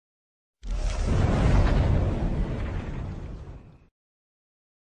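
A huge explosion booms and rumbles away.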